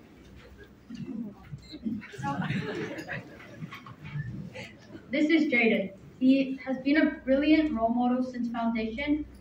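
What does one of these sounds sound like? A man speaks into a microphone over loudspeakers in an echoing hall.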